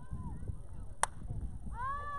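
A metal bat strikes a baseball with a sharp ping.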